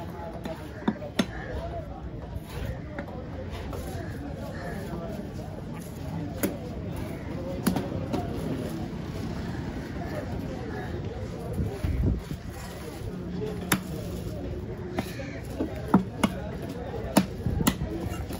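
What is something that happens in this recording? A heavy knife chops and thuds against a wooden block.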